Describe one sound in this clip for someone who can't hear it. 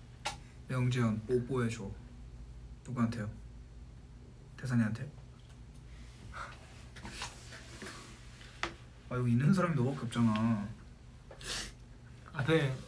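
A young man talks casually and close by, in short bursts.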